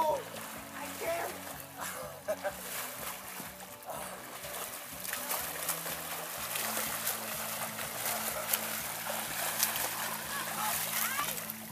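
A swimmer splashes through water close by.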